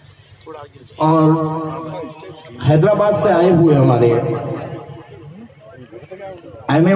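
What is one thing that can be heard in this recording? A man sings loudly through a loudspeaker.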